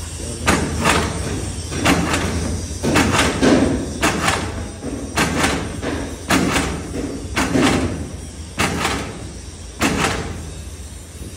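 A hand shear cuts through paper with repeated sharp chops.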